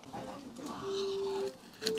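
A young man bites into fried food and chews noisily.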